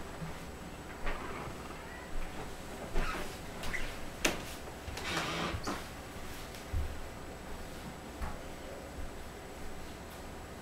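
Feet patter and thump on a wooden stage.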